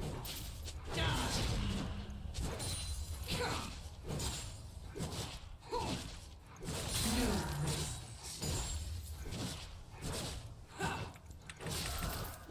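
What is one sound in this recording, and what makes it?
Game characters' weapons clash and strike repeatedly.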